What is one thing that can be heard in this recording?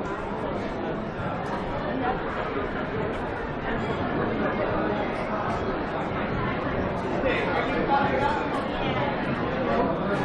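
Voices of young men and women murmur and chatter nearby, growing louder.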